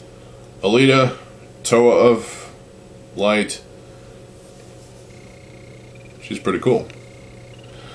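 A young man speaks close by, in short bursts with pauses.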